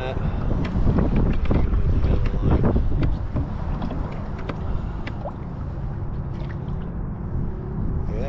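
A fishing reel clicks as its handle turns.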